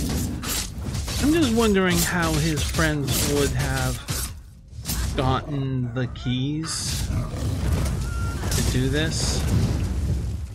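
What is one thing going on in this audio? A beast growls and roars loudly.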